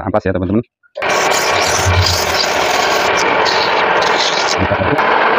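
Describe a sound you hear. Sandpaper rasps against spinning wood.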